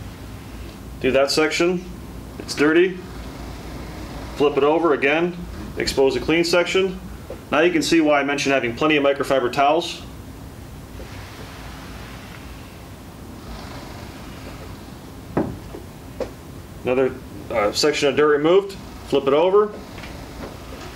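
A young man talks calmly and clearly, close by.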